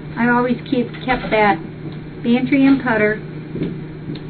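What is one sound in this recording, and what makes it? An older woman speaks with animation close to the microphone.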